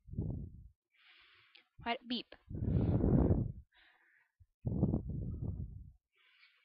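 A teenage girl talks casually, close to a microphone.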